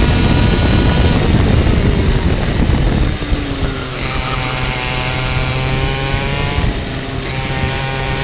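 A kart engine buzzes loudly close by, its pitch rising and falling with the throttle.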